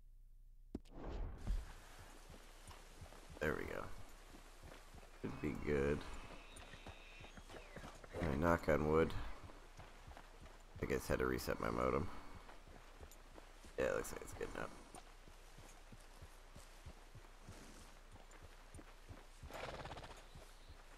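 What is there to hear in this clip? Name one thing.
A horse's hooves thud on a dirt trail at a walk.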